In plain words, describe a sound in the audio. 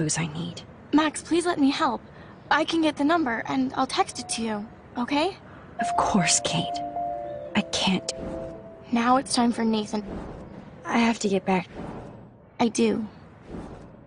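A woman speaks earnestly and pleadingly.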